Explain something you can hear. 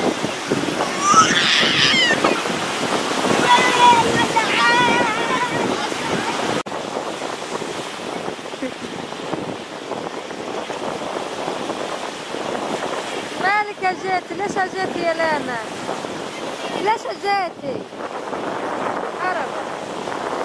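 Young girls squeal and shout playfully.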